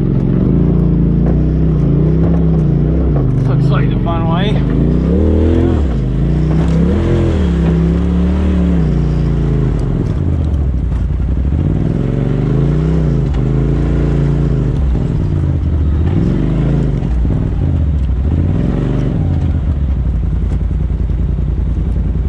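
Tyres crunch over rocks and gravel.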